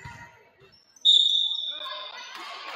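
A referee's whistle blows once, sharp and loud.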